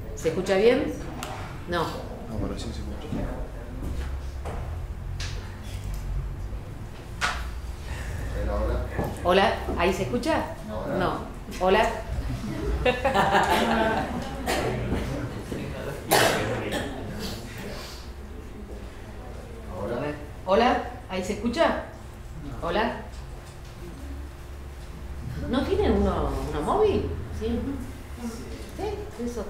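A man talks nearby, pausing often.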